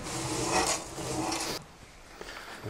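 Gravel rattles and pours into a tank.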